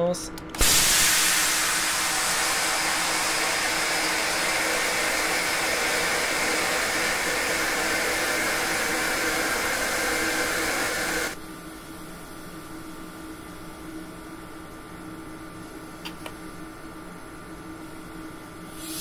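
A train's engine hums steadily.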